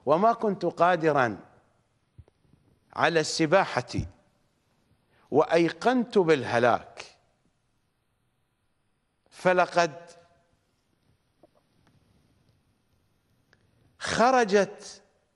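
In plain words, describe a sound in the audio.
A middle-aged man speaks forcefully into a microphone in short bursts with pauses.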